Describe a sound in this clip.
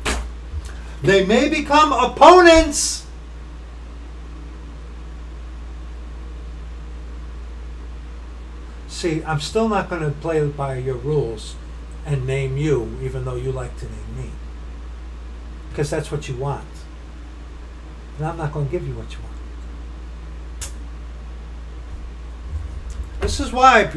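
A middle-aged man talks with animation, close to a computer microphone, in bursts with pauses.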